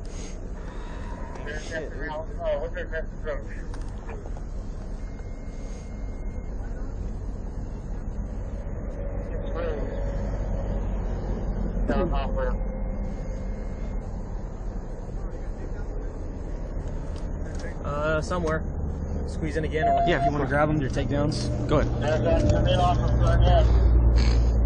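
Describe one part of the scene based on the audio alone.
A car engine hums steadily from inside the car, growing louder toward the end.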